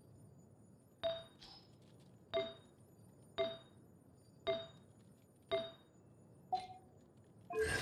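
Short, bright chimes ring again and again in quick succession.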